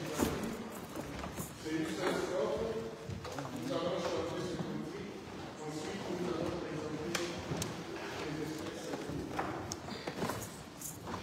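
A man speaks or chants calmly into a microphone in an echoing hall.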